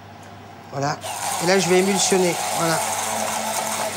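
A hand blender whirs steadily in a pot.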